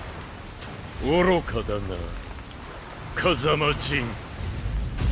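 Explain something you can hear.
A deep-voiced older man speaks slowly and menacingly.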